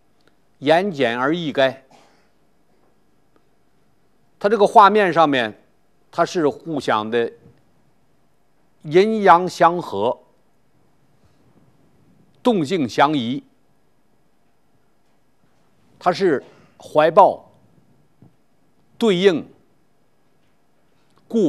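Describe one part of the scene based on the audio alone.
An elderly man speaks calmly and clearly into a close microphone, in short phrases with pauses.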